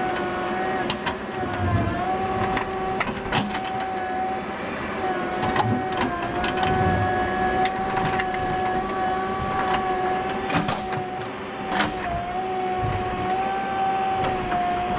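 A metal bucket scrapes and knocks into dry earth and stones.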